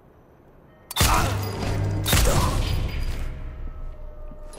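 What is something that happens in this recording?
A silenced pistol fires a shot that rings out in a large echoing hall.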